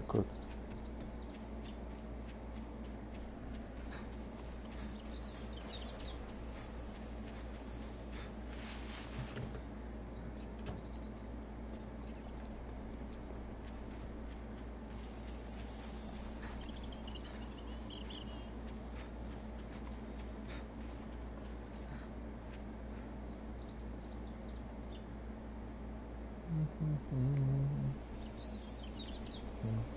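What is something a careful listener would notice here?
Footsteps crunch through dry grass.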